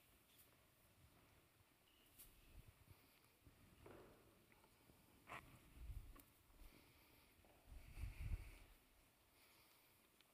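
Footsteps shuffle and thump softly on a wooden platform.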